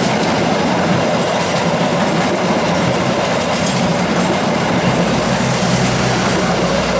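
A passenger train rushes past close by, its wheels clattering and rumbling loudly on the rails.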